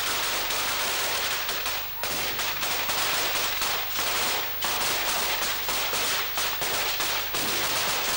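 Firecrackers crackle and pop rapidly nearby, without a break.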